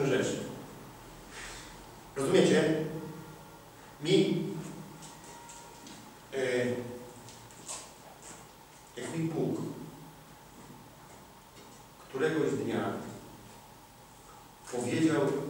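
A man speaks with animation in short bursts, in a room with a slight echo.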